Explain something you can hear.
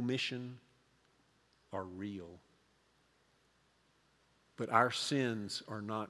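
An elderly man speaks expressively into a microphone, in short phrases with pauses.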